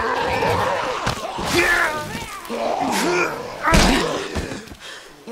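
A young man grunts and strains up close.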